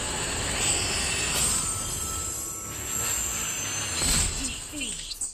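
A crystal tower shatters with a loud burst.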